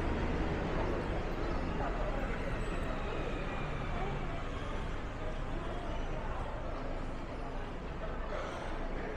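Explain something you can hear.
Crowd chatter murmurs in an echoing arcade.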